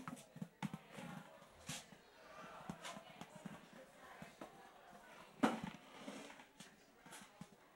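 Footsteps shuffle softly across a carpeted floor.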